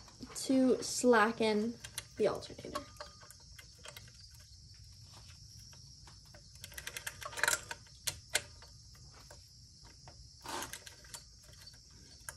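A wrench clicks and clinks against metal engine parts.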